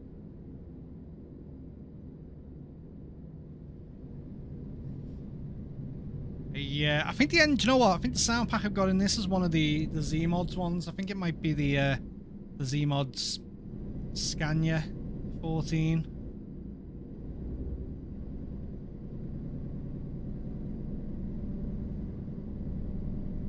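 A truck engine hums low and steady as it drives.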